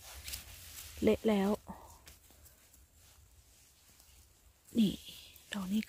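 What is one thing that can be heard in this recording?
Grass rustles softly as a hand picks mushrooms.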